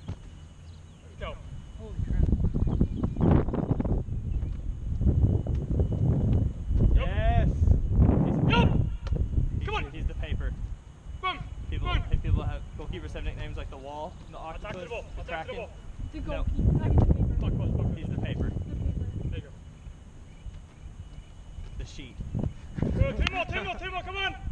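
A man calls out instructions outdoors.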